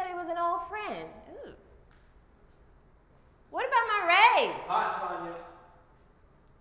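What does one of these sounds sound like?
A woman speaks sharply and with emotion, close by.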